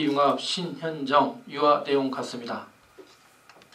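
An older man speaks calmly over a loudspeaker in an echoing hall.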